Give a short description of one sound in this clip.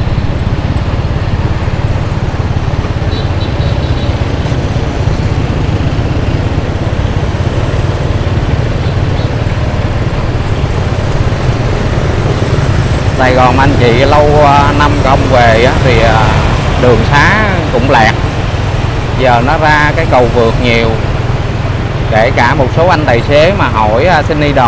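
Other motorbikes and cars drive past nearby.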